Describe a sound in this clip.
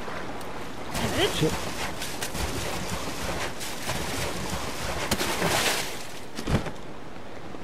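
Hands and boots scrape and scrabble on rock while climbing.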